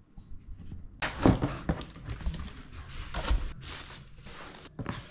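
Cardboard and packing material rustle as a box is unpacked.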